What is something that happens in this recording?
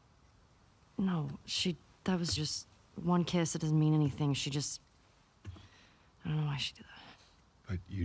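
A young woman answers, protesting with animation.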